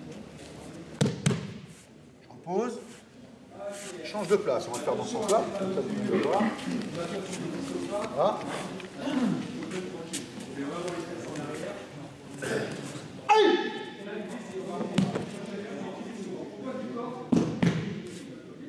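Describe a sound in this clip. A body thuds onto a mat.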